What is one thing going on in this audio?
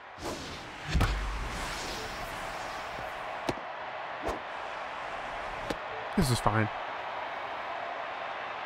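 A crowd cheers in a large stadium.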